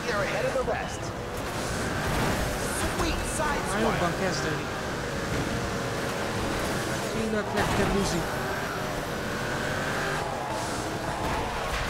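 Tyres screech as a car slides through corners.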